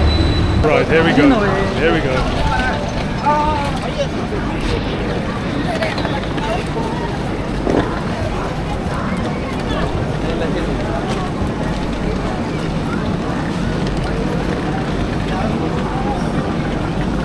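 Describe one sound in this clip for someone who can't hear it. A crowd of people chatters around.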